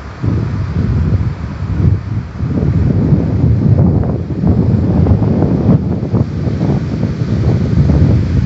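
Ocean waves crash and roll onto rocks.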